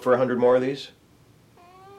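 A man speaks close by in a calm, drawn-out voice.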